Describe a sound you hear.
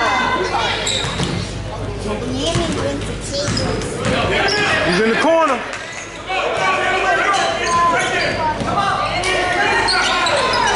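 A crowd of spectators chatters and cheers close by in a large echoing gym.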